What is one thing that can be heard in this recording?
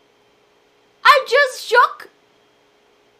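A young woman laughs brightly into a microphone.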